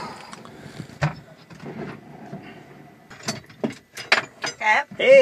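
Objects clink and knock as they are handled.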